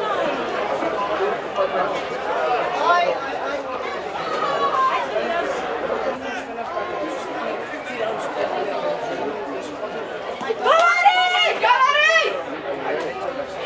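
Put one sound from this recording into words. A crowd of spectators talks and calls out outdoors.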